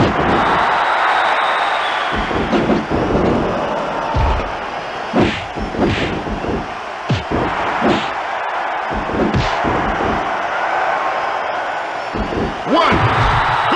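Punches and slams thud repeatedly.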